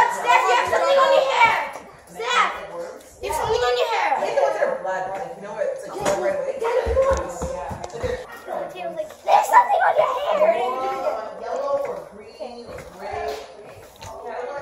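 Children bounce and thump on a trampoline mat.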